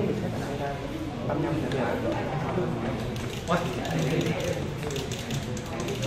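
Several adults talk and chatter nearby in an indoor room.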